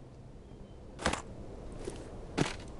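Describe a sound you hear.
Metal clicks sharply as a cartridge is loaded into a lever-action rifle.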